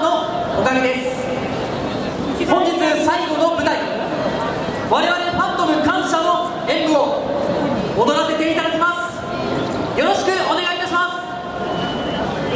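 A young woman speaks animatedly into a microphone over loudspeakers outdoors.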